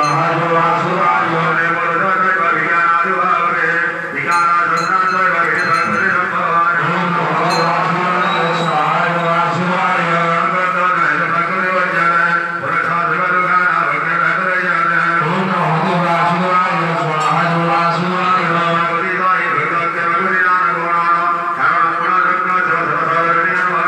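A man chants prayers.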